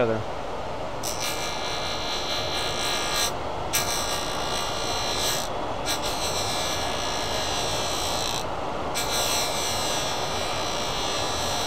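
A tool rubs with a steady hiss against a spinning workpiece.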